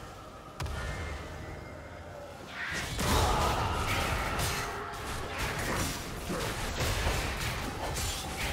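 Fantasy combat effects crackle, whoosh and clash in a fast fight.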